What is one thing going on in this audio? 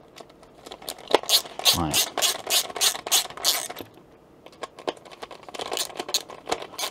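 A ratcheting screwdriver clicks rapidly as a screw is turned.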